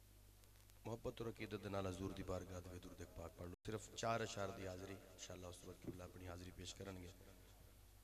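A man sings into a microphone, heard through loudspeakers.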